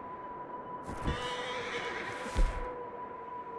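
A wooden barn door creaks open.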